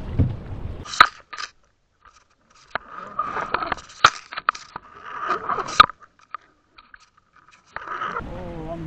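Muffled clicks and bubbling sound underwater.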